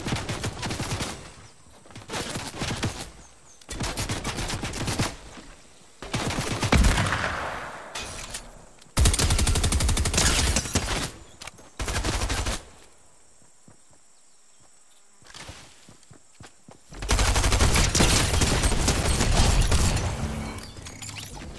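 Gunfire rattles in quick, loud bursts.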